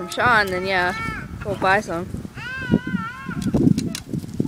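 A toddler babbles and squeals in a high voice close by.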